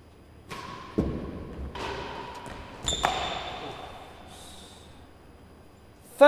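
A ball is struck hard with a racket and thuds off the walls, echoing in a large hall.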